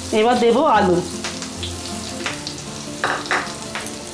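Potato chunks drop into a frying pan with a clatter.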